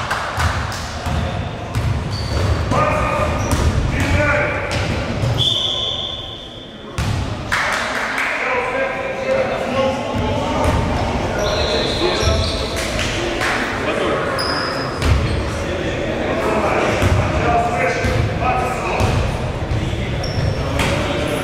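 Players shout to each other across an echoing hall.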